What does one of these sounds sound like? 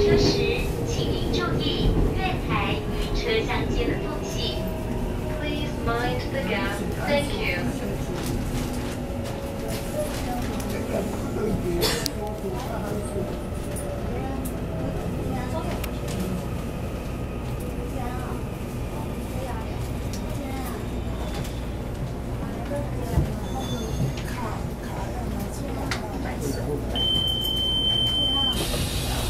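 An electric multiple-unit train rumbles along the rails, heard from inside the carriage.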